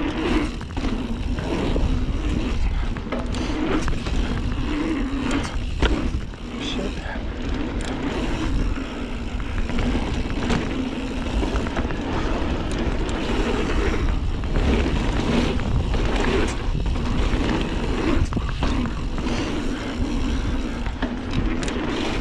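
Wind buffets loudly as a bike rides fast.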